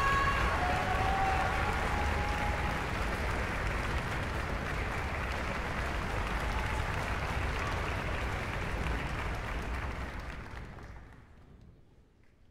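An audience applauds loudly in a large echoing hall, then the clapping dies away.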